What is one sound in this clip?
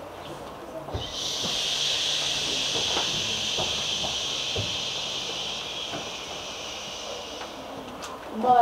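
Children make a long hushing sound together.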